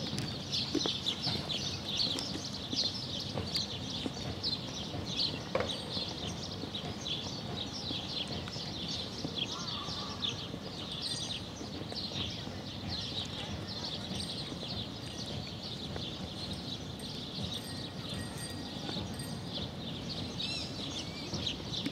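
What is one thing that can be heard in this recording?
A small terrier's paws patter on paving stones.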